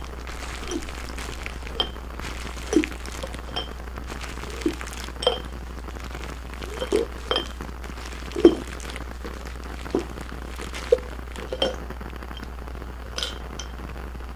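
Bubble wrap pops in sharp, scattered snaps close by.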